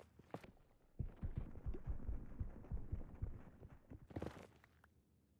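Pickaxe blows crack against stone.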